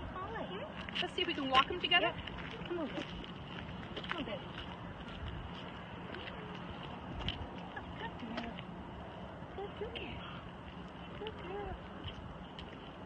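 Footsteps scuff on a gravel path.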